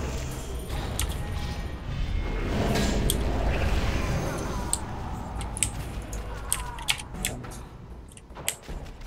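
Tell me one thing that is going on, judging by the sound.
Magic spells whoosh and crackle in a fight.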